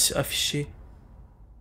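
A young man speaks briefly close to a microphone.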